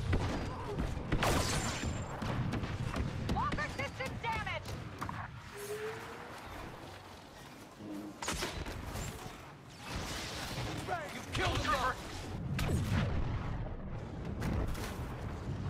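Laser blasters fire in sharp bursts.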